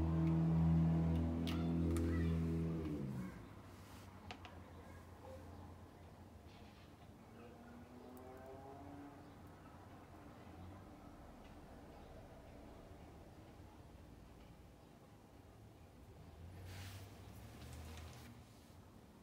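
Stones clack softly as they are set down on wood.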